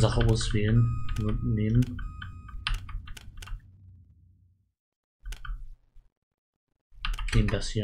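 Short electronic blips sound as a menu selection moves.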